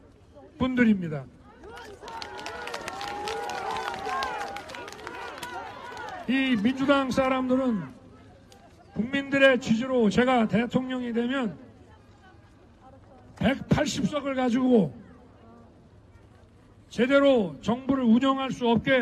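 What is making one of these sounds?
A middle-aged man speaks forcefully through a microphone and loudspeakers outdoors.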